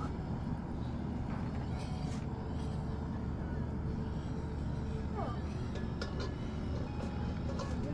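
A metal pan clanks against a camp stove.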